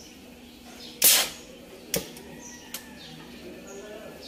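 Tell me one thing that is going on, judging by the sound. A gas torch flame hisses against metal.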